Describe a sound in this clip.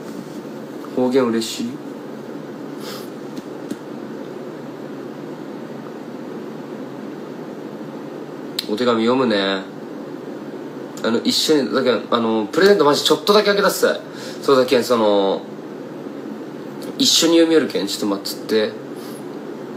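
A young man speaks casually and close to a microphone, in short bursts.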